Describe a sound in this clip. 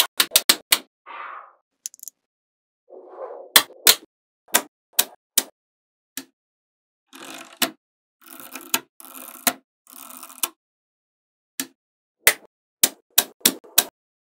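Small metal magnetic balls click sharply together.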